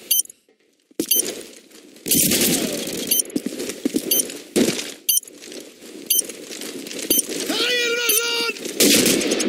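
Footsteps fall on stone paving.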